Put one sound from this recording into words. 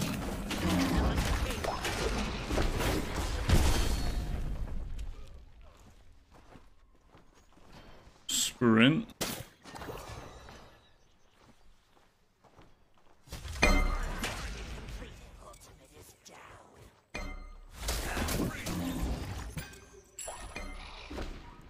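Video game spell effects whoosh and crash in quick bursts.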